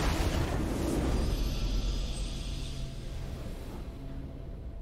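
A triumphant game fanfare rings out and then fades away.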